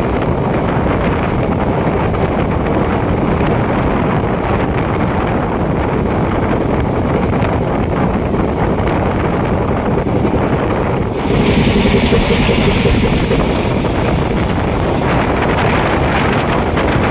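Wind rushes loudly past an open train door.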